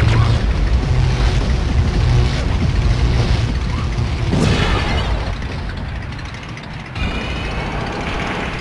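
A toy car's engine hums and whines steadily as it drives.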